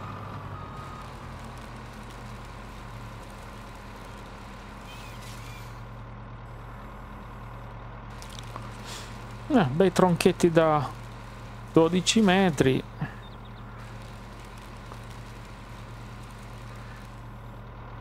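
A heavy machine's diesel engine hums steadily.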